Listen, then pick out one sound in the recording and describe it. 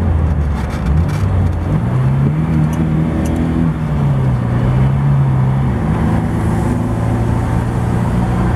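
Tyres roll and rumble on asphalt.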